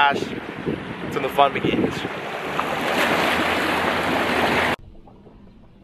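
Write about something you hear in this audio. Water rushes past a moving boat.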